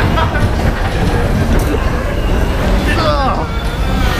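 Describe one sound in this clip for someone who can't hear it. Bumper cars bump into each other with dull thuds.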